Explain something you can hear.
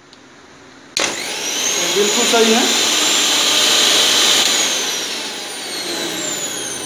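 A mixer grinder motor whirs loudly with a rising whine.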